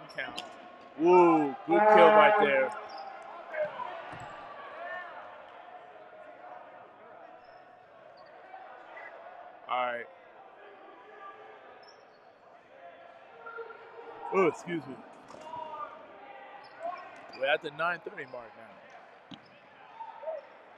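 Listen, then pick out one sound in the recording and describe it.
Spectators chatter nearby.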